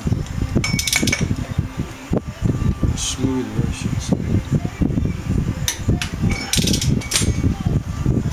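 A wrench clanks against a metal wheel hub.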